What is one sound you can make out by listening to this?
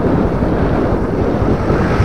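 A truck engine rumbles as the truck drives closer.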